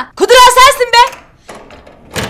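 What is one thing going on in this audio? A young woman speaks in an agitated voice.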